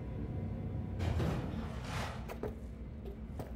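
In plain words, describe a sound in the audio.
A metal door slides open with a hiss.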